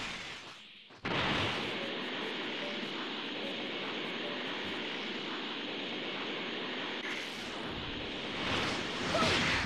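A loud rushing whoosh sweeps past as a figure flies at speed.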